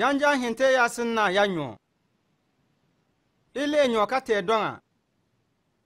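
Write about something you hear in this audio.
A man speaks calmly and clearly, close by, with pauses between phrases.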